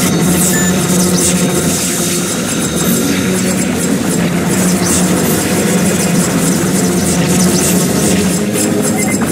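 Rapid laser shots fire continuously.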